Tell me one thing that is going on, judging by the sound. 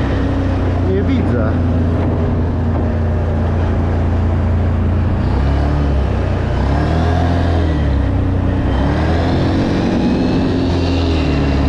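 A V-twin quad bike engine drones while cruising.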